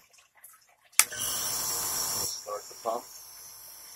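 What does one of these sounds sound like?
A small compressor motor hums and buzzes steadily.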